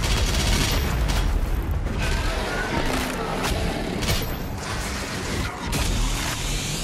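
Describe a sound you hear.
A heavy gun fires in loud blasts.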